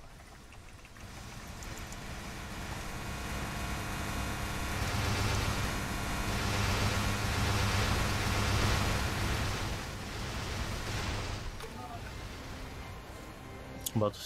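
Game effects whoosh and blast in a steady loud rush.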